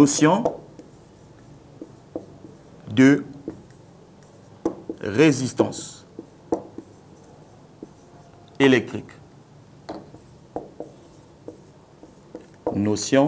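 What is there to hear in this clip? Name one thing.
A marker squeaks and taps against a whiteboard in short strokes.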